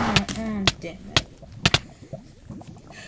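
Lava pops and crackles.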